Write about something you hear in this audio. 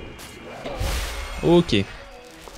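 A magic spell whooshes and hums loudly.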